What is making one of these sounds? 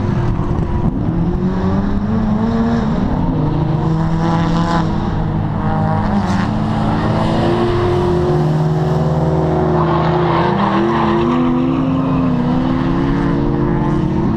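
A racing car engine revs loudly and rises and falls in pitch.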